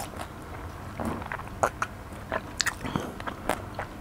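A man gulps a drink close to a microphone.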